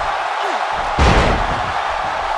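A body slams heavily onto a wrestling mat.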